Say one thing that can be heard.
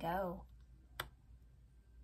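A card taps softly on a table.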